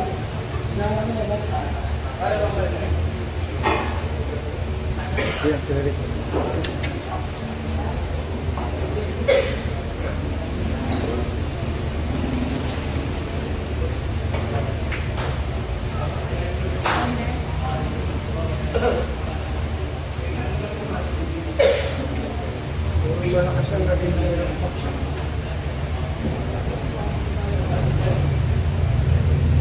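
A crowd of men and boys murmurs and chatters nearby.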